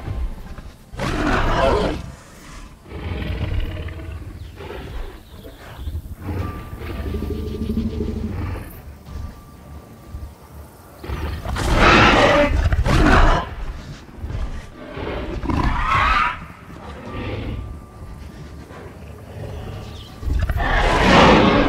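A large creature roars loudly.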